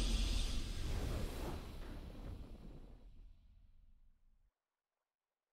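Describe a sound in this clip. A triumphant game victory fanfare swells and fades out.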